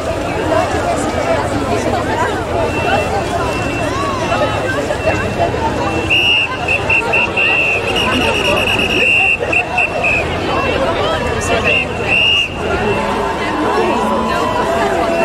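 A crowd of men and women chatter all around, close by.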